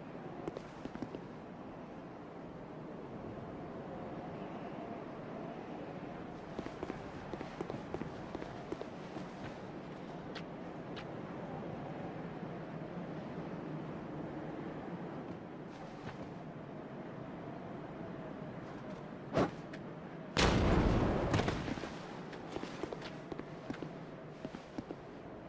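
Armoured footsteps clank and scuff on stone and grass.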